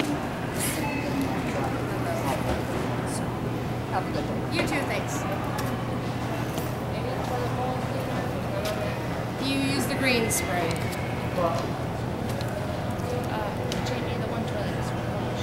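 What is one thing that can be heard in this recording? A middle-aged woman talks nearby in an echoing room.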